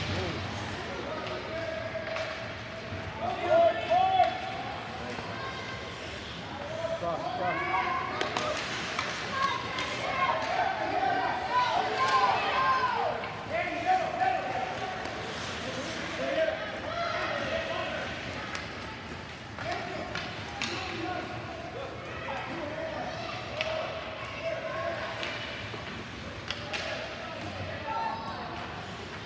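Spectators cheer and shout in an echoing arena.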